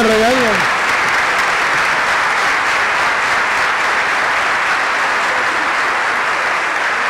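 A large crowd applauds steadily.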